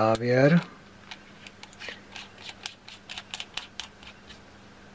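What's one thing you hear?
Small metal parts click and scrape together.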